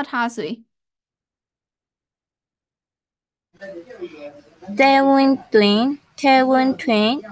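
A woman speaks slowly and clearly through an online call, drawing out syllables.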